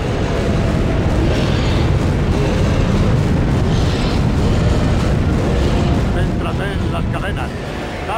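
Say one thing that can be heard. Electricity crackles and buzzes loudly.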